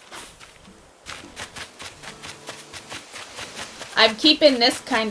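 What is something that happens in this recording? Footsteps patter quickly across soft grass.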